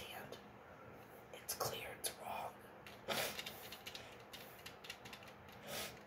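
Pills rattle in a plastic bottle.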